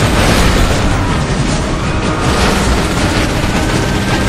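A car crashes and tumbles with a metallic bang.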